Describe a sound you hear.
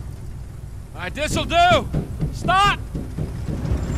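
A man shouts up close.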